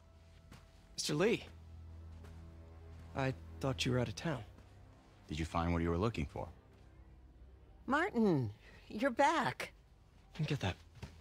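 A young man speaks in a surprised, friendly voice.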